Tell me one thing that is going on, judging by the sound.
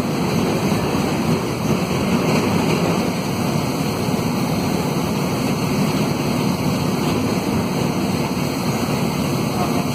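Tyres rumble on asphalt beneath a moving minibus.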